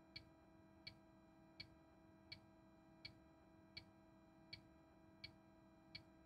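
A turn signal ticks at an even pace.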